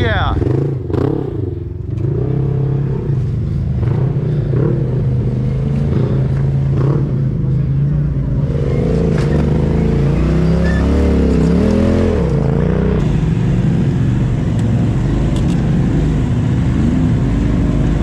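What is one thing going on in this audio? Tyres crunch and grind over rocks.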